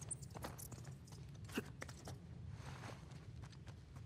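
Hands scrape and grip on stone while climbing.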